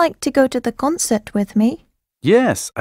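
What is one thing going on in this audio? A young woman speaks clearly through a microphone.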